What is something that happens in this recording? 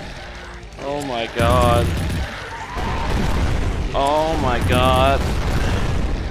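Monsters growl and roar nearby.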